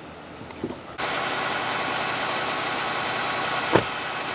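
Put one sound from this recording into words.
A fire engine's motor rumbles steadily nearby.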